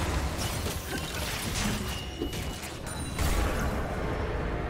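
Magic spell effects crackle and whoosh in a fast fight.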